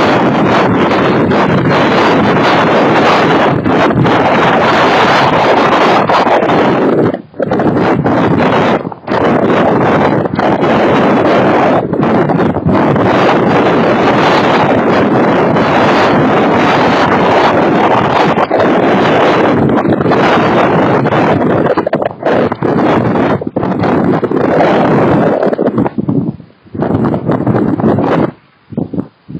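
Strong gusty wind roars and buffets outdoors, dropping away near the end.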